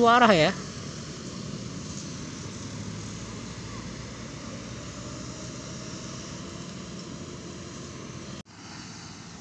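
Car engines hum as vehicles drive slowly past on a road.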